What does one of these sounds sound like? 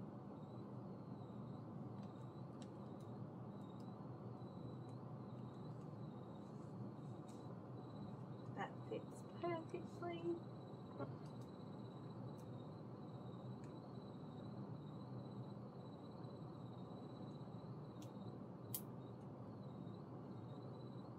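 A woman fastens shoe buckles with small clicks.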